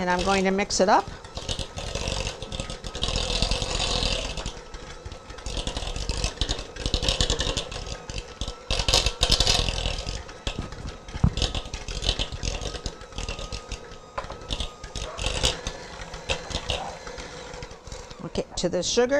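An electric hand mixer whirs steadily while beating in a bowl.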